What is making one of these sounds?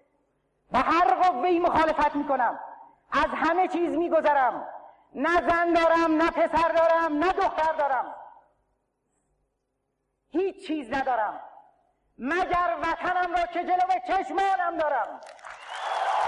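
A middle-aged man speaks emotionally into a microphone, pausing between phrases.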